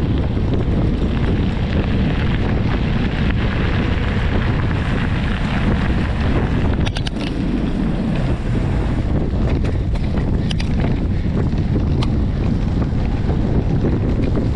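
Bicycle tyres roll and crunch over a gravel path.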